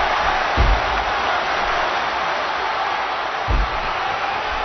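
A body thuds heavily onto the ring mat.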